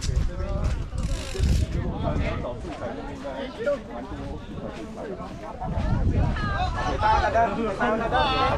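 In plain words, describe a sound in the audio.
Wind rushes against a microphone in gusts.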